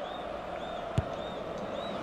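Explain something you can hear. A football is struck with a sharp thump.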